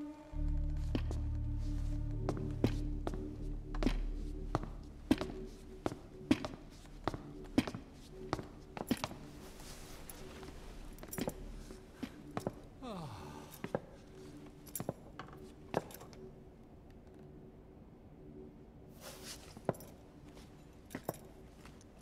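Boots with spurs step slowly across a metal floor.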